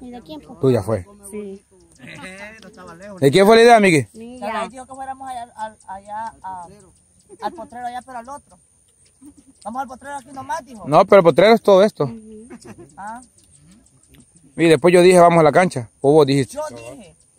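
A middle-aged woman talks nearby with animation, outdoors.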